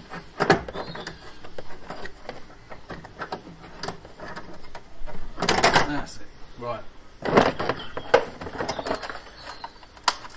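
Plastic trim clicks and rattles as it is handled.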